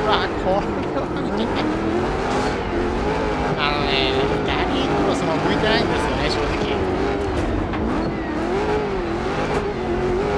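Tyres crunch and skid over loose dirt.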